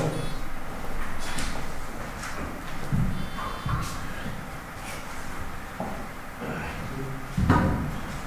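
Men and women talk quietly at a distance.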